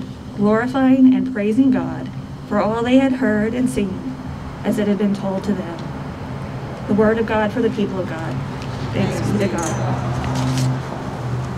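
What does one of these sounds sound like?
A young woman speaks calmly into a microphone outdoors.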